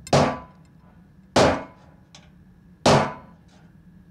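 A metal tool scrapes and clicks against glass.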